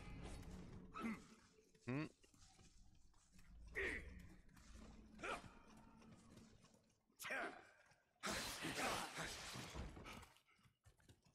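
Swords swish and clash in quick bursts.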